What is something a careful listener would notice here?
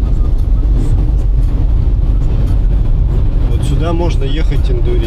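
A car engine and tyres rumble steadily on the road.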